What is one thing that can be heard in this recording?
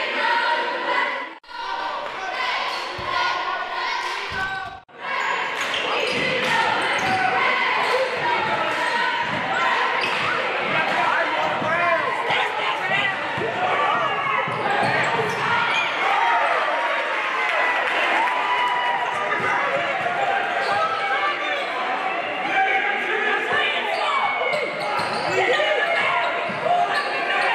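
A crowd of spectators chatters and cheers in an echoing hall.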